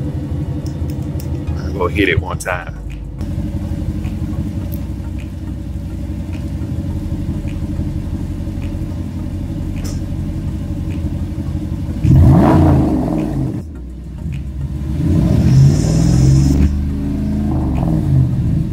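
A truck engine idles with a deep exhaust rumble.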